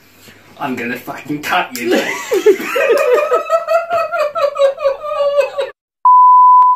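Two young men laugh loudly and heartily.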